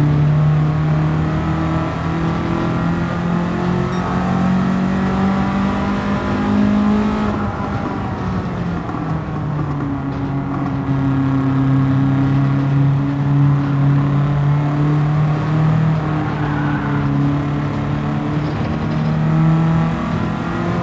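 A racing car engine roars steadily, its pitch rising and falling as it shifts gears.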